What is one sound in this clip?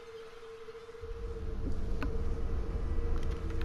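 A deep rumble grows louder as the diving vessel descends.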